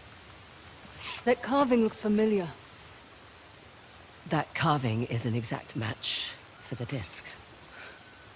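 A second young woman answers calmly, close by.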